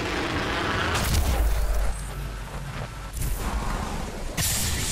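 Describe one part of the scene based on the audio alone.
A deep rushing whoosh roars.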